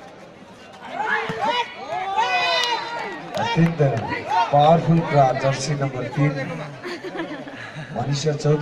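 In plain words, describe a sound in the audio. Young women players shout to each other.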